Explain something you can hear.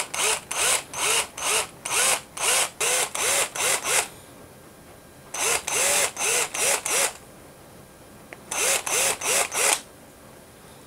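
A cordless drill whirs in short repeated bursts.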